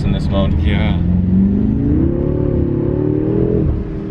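A car engine revs up as the car speeds away.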